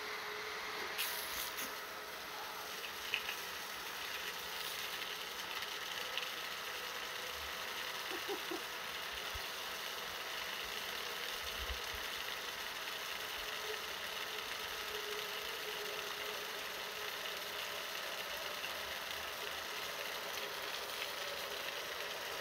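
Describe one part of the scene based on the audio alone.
A strong jet of water from a hose splatters onto pavement outdoors.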